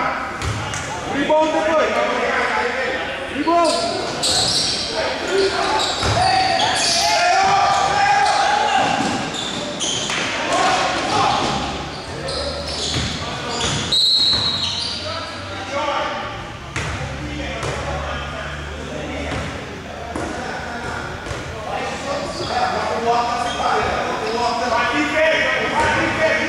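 Sneakers squeak on a hard court in an echoing hall.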